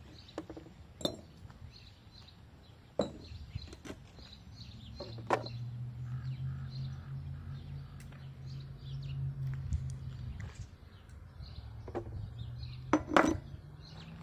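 Metal pieces clunk onto a plastic scale.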